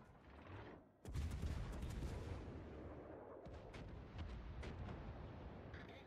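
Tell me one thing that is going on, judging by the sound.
Heavy ship guns fire with deep, rumbling booms.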